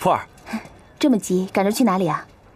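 A young woman speaks cheerfully nearby.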